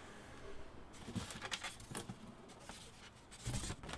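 A cardboard box rustles and bumps as it is handled.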